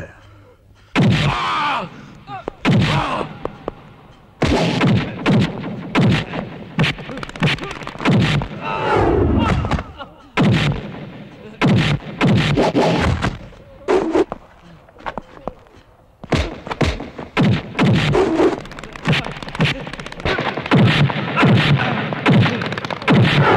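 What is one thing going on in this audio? Punches and blows land with loud thuds.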